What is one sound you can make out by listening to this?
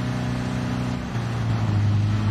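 A car engine drops in pitch as it shifts gear.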